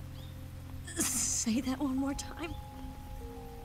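A young woman speaks weakly and softly, close by.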